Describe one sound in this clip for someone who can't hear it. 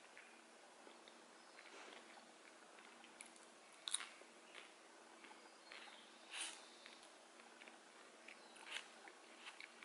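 Crisp food rustles and crackles as fingers pick it up.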